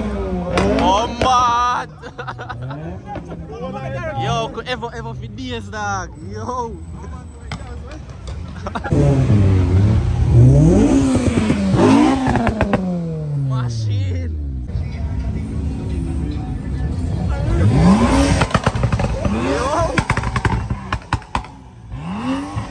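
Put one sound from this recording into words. Car engines rev loudly and roar past, their pitch climbing and falling.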